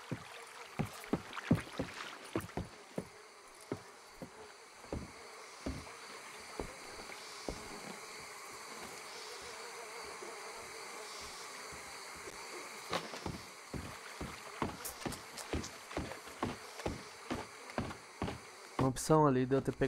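Boots thud on wooden boards at a steady walking pace.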